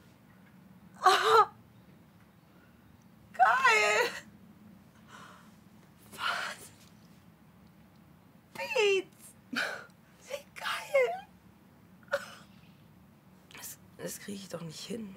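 Another young woman speaks close by, calmly and gently.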